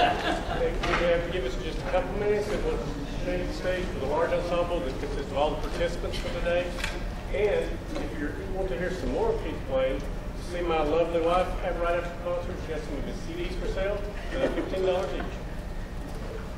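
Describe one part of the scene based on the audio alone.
A middle-aged man speaks with animation in a large echoing hall.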